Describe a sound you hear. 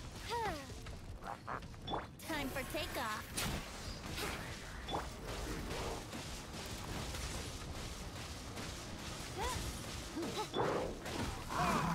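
Magic blasts whoosh and crackle in quick bursts.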